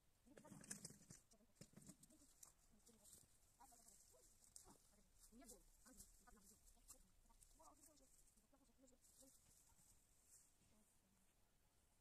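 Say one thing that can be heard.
Dry plants rustle and crackle as they are pulled.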